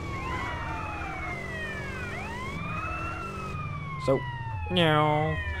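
A siren wails up and down.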